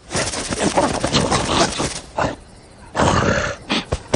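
A cartoon lion growls and roars loudly.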